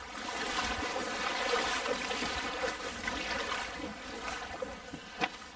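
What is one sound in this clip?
Water splashes and swirls close by.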